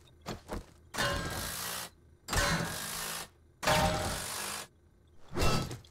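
A cordless power drill whirs in short bursts.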